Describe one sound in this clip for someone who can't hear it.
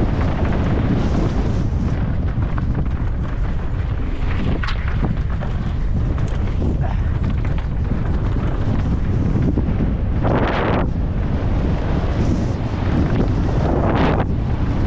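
Bike tyres rattle and crunch over a rocky dirt trail.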